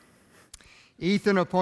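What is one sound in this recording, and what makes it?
A man speaks loudly into a microphone in an echoing hall.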